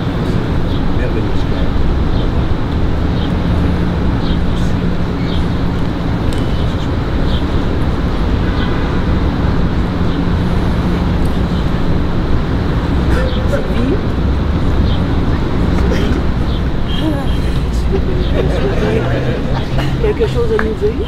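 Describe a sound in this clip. An elderly man speaks calmly nearby, outdoors.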